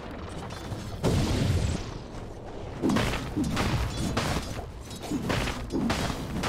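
Blows and spell effects clash repeatedly in a fight.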